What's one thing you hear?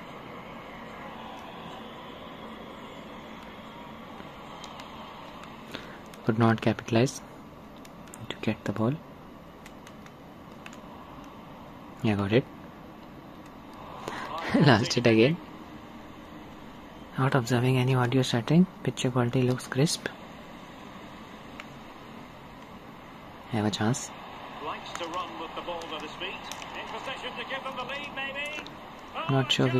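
Buttons on a game controller click softly.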